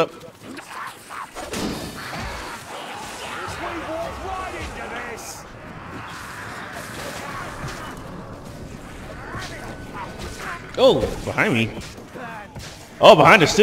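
Melee weapons hack into a pack of rat creatures.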